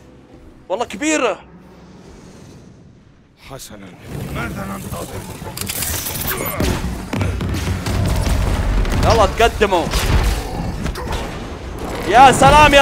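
A young man speaks with animation into a microphone close by.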